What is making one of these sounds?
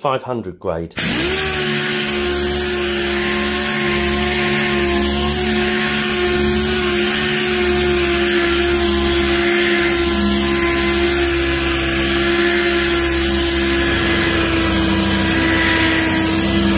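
A second sander starts up and hums steadily at a lower, even pitch.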